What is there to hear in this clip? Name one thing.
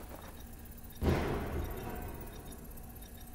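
A rifle fires a single loud shot that rings and fades.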